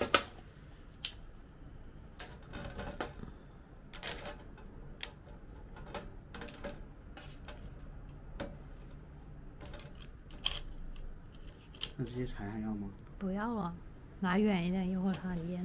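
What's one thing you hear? Metal tongs clink against a metal grill.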